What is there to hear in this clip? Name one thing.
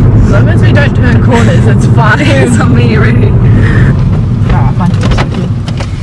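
A young woman talks and laughs cheerfully close by.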